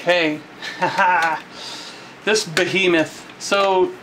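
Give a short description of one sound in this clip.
Plastic parts click and snap as a toy is handled.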